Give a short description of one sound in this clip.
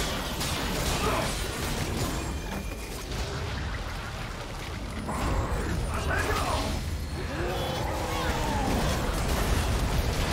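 Spell effects whoosh and crackle in a fast video game battle.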